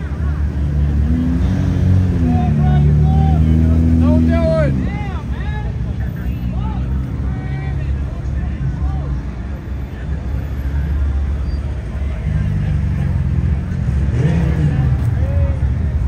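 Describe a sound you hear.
A car engine revs loudly nearby.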